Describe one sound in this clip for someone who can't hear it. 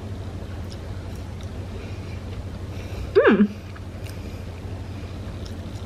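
A young woman chews crunchy fries close to the microphone.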